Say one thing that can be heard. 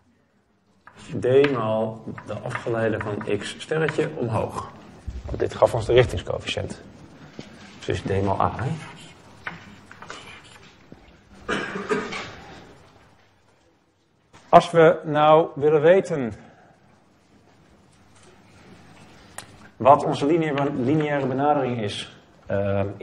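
A young man lectures calmly.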